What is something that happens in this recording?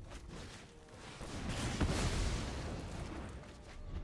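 A fiery blast whooshes across and bursts.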